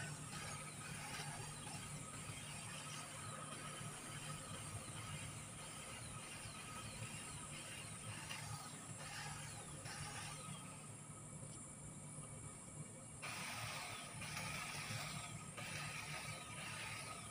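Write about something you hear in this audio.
A hedge trimmer buzzes while cutting a hedge.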